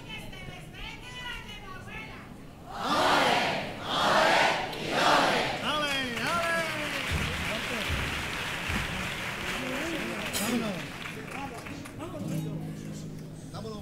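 Several performers sing and shout loudly through loudspeakers in a large hall.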